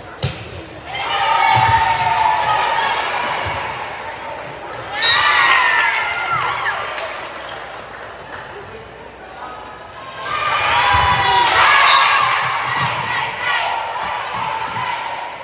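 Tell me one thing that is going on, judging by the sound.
Girls and women shout and cheer in a large echoing hall.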